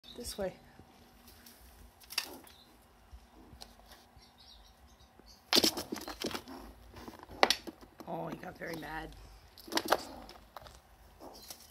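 A squirrel gnaws and crunches on a nut close by.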